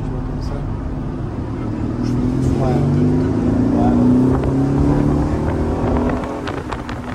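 A car engine roars loudly, rising in pitch as it accelerates.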